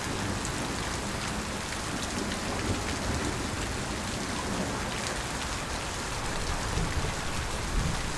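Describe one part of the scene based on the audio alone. Heavy rain pours steadily onto a wet pavement.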